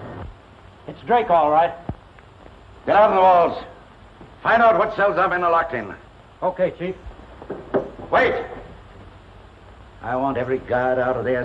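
An elderly man speaks sternly and loudly.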